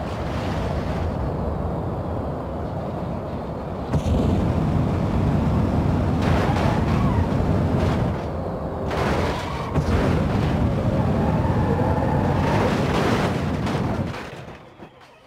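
A heavy truck engine roars loudly as it drives.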